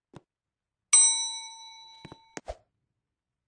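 An elevator bell chimes once and rings out.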